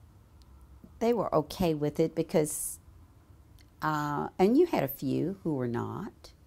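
An older woman speaks calmly and close by.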